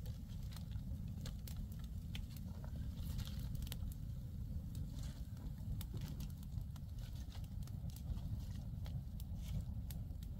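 Dry twigs rustle and snap as a woman feeds a fire.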